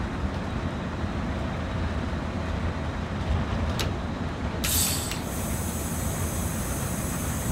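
A locomotive engine rumbles steadily from inside the cab.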